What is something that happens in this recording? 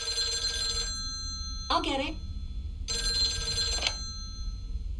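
A telephone rings indoors in short bursts.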